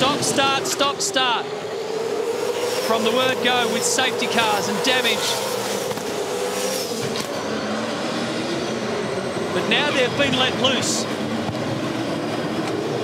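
Racing car engines roar at high revs as cars speed past.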